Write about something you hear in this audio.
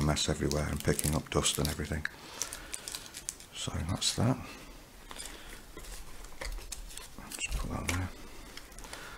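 Hands rustle and shuffle small items in a soft fabric case.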